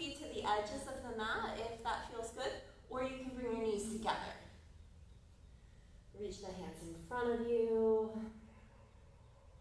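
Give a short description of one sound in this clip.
A woman speaks calmly and slowly, as if guiding.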